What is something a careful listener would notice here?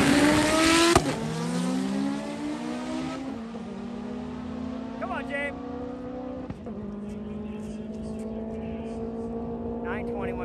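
A race car engine fades into the distance as the car speeds away.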